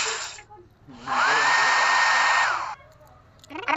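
A hair dryer blows with a steady whir.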